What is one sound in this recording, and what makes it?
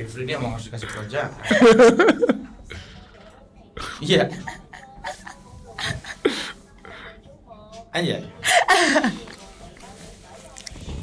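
A young woman laughs loudly into a microphone.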